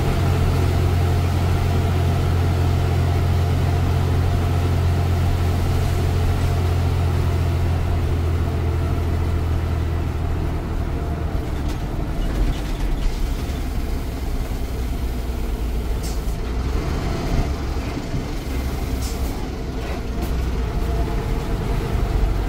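Loose parts of a bus rattle as it rolls over the road.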